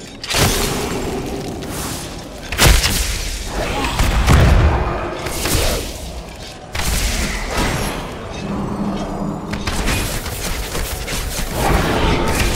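Magical spells crackle and whoosh loudly.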